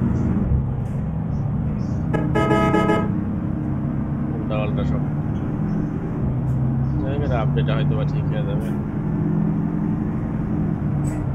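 A bus engine drones steadily while driving.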